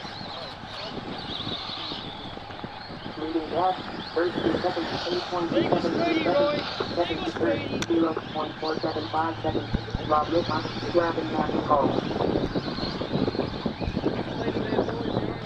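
Electric radio-controlled trucks whine as they race around a dirt track.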